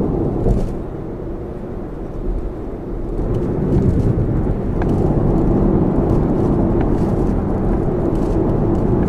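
Car tyres roll along the road.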